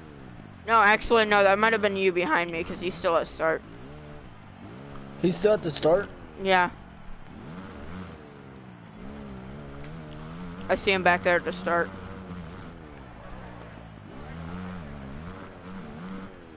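A dirt bike engine revs up and down loudly, rising and falling in pitch.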